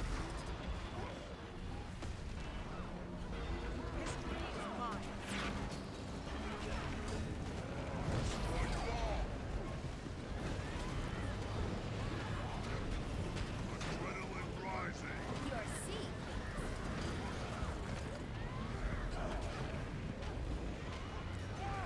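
Magic blasts and heavy impacts crash again and again in a fierce battle.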